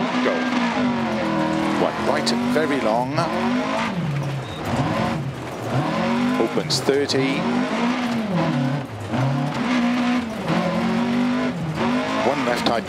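A rally car engine revs hard, rising and falling in pitch with each gear change.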